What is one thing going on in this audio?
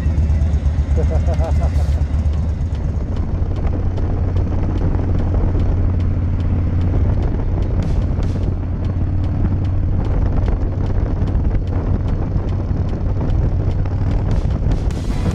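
A motorcycle engine rumbles steadily close by.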